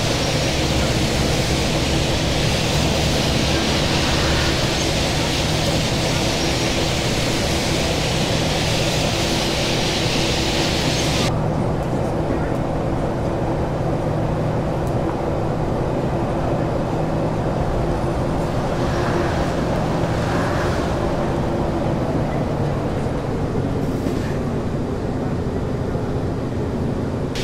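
Tyres roll over the road surface.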